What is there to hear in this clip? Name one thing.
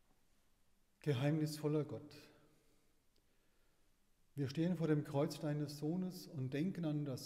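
An elderly man chants in a resonant echoing church.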